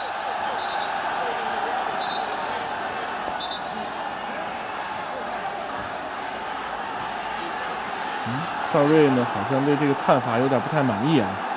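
A large crowd murmurs steadily in an echoing hall.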